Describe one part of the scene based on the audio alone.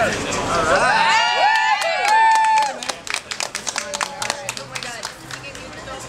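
A group of people claps.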